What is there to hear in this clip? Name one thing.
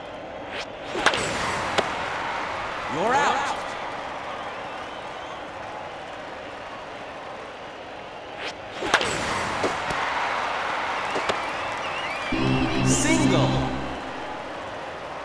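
A crowd cheers in a large stadium.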